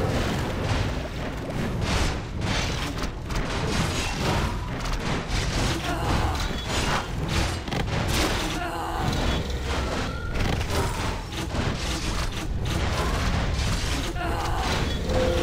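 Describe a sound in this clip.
Game battle sounds clash and thud steadily.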